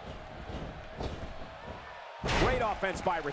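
A body thuds heavily onto a wrestling mat.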